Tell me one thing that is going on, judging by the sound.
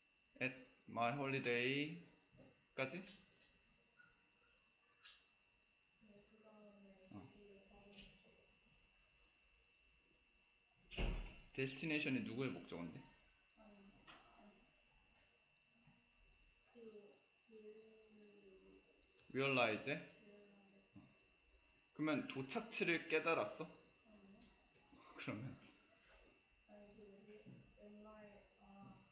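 A young man speaks calmly into a microphone, explaining at a steady pace.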